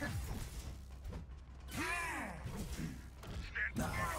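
A heavy blade whooshes through the air.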